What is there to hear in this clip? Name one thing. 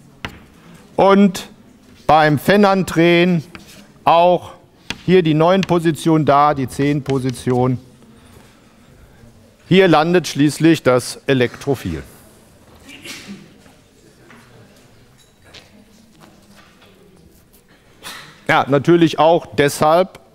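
A middle-aged man lectures calmly.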